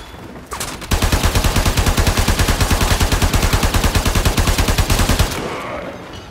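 An automatic gun fires a long burst of rapid shots.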